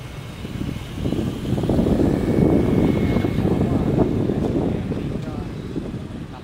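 A motorbike passes close by with a louder roar.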